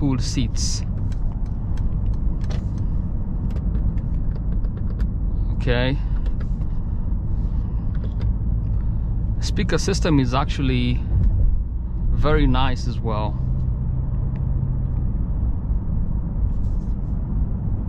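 A car engine hums and tyres rumble steadily on the road from inside the cabin.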